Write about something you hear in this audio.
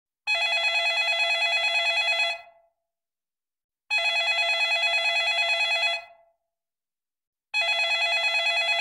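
A phone ringtone trills in repeated bursts with pauses between them.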